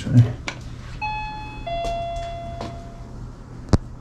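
A doorbell chimes two tones.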